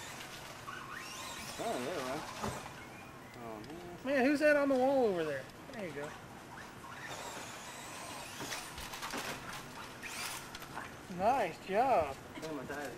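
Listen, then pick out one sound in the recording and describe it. Small tyres scrabble over loose dirt.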